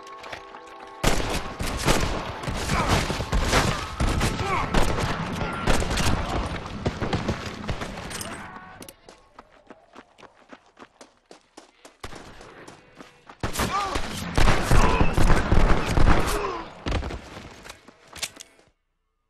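Revolver shots crack in rapid bursts.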